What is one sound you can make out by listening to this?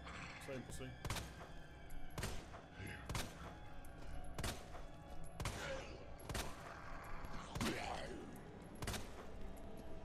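Gunshots fire in quick succession.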